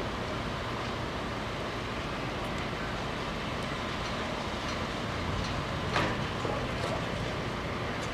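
Steam hisses from a vent pipe outdoors.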